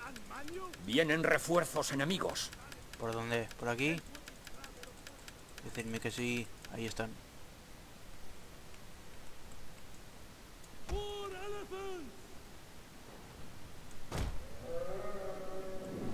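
A young man talks with animation into a microphone, close by.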